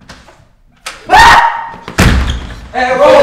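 A young man knocks hard on a wooden door.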